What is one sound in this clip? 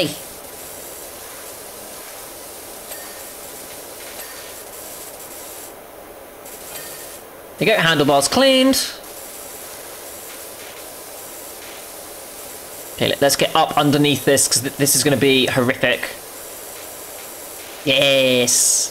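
A pressure washer sprays water in a steady hiss.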